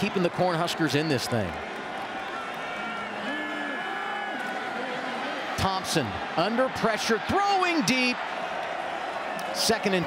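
A large crowd roars steadily in an open stadium.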